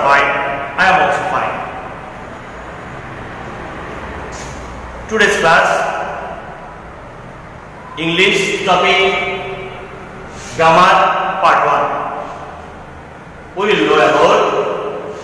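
A man speaks loudly and with animation in an echoing room.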